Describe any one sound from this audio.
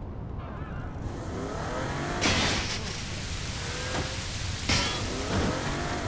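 A car engine runs and revs.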